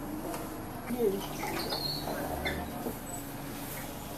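Bus doors hiss and thud shut.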